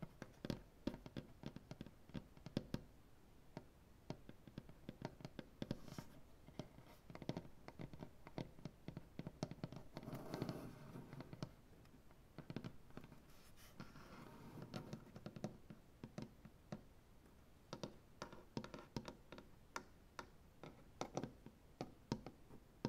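Fingernails tap and click on a wooden tabletop close by.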